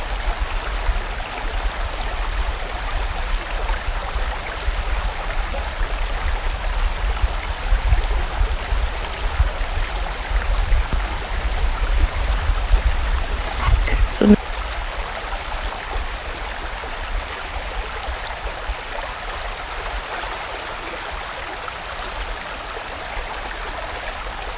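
A stream rushes and gurgles over rocks nearby.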